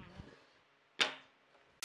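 A thin wooden strip knocks against other wooden strips.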